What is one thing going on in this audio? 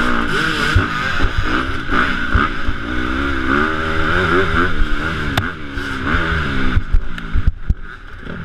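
Bicycle tyres rumble and skid over a bumpy dirt trail.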